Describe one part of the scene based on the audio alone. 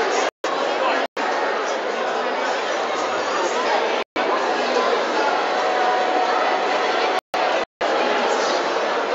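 A crowd of people chatters in a large echoing hall.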